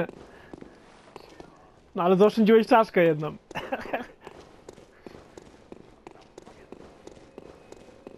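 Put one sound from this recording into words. Footsteps fall on a stone floor.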